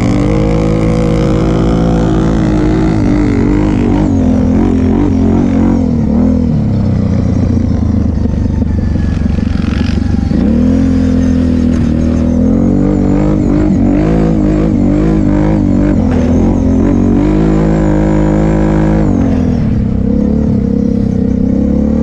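A quad bike engine roars up close, revving up and down.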